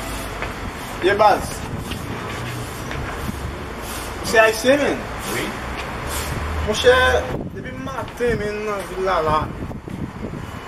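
A man greets someone loudly nearby.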